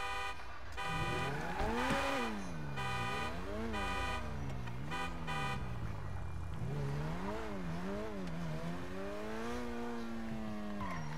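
A car engine revs up and down as the car drives off.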